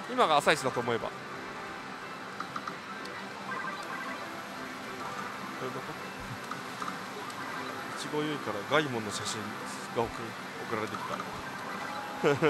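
A slot machine plays electronic jingles and beeps.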